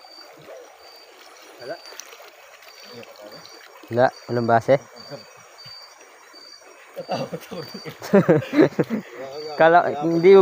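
Water splashes and sloshes around a wader.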